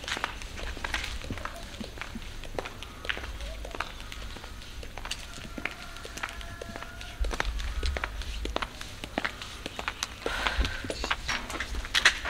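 Footsteps in sandals tap on pavement outdoors.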